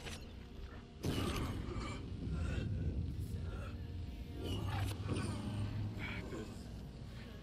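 A man speaks in a low, strained voice close by.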